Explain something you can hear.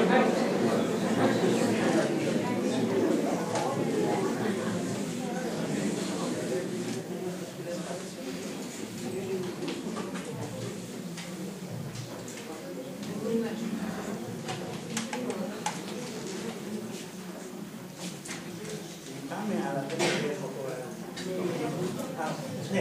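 A middle-aged man reads aloud calmly through a microphone in an echoing hall.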